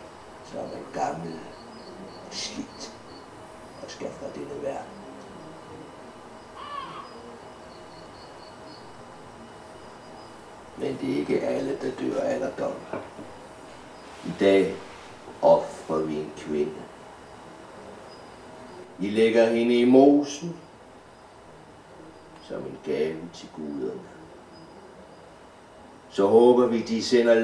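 An elderly man speaks slowly and expressively, close by.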